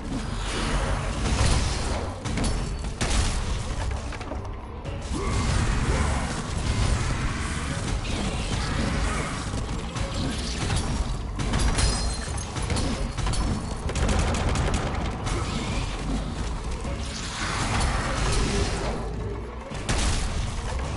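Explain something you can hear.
A giant creature thuds heavily against stone.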